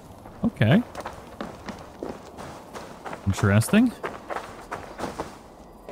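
Soft footsteps pad over grass and dirt.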